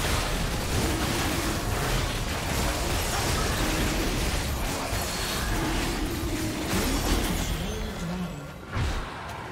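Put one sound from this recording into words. Magic blasts crackle and boom in a busy fight.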